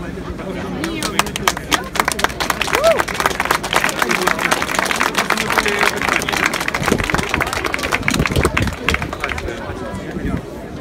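A crowd claps hands in a rhythm.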